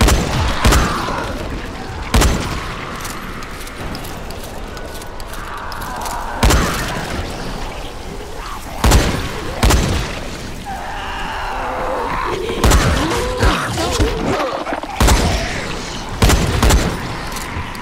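A shotgun fires loud booming shots.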